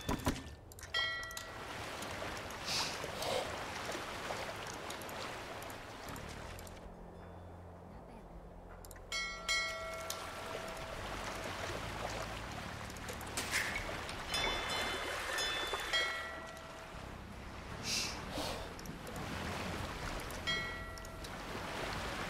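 Short game chimes ring out now and then.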